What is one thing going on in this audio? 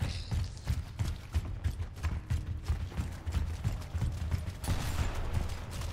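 Heavy boots thud on concrete.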